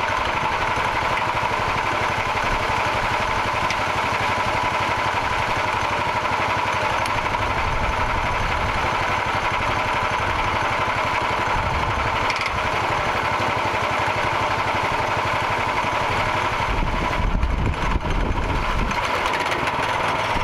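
A band saw blade whines as it cuts through a log.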